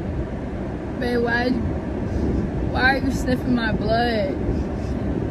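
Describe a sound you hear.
A young woman speaks tearfully and cries close by.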